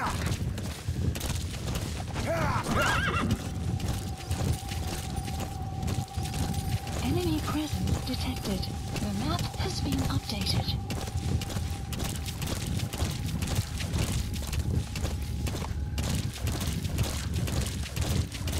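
Horse hooves gallop steadily over soft ground.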